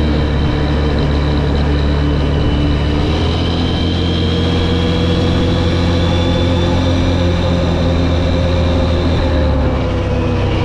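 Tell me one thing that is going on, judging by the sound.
A V-twin quad bike cruises along an asphalt road, its engine rising gradually in pitch as it speeds up, then easing off.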